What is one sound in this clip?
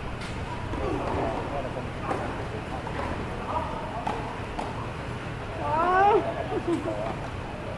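A tennis ball is struck with rackets back and forth, echoing in a large open space.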